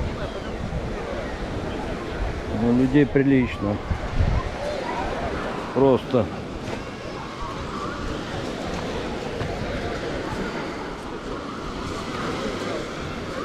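A large crowd of people chatters and calls out in the distance outdoors.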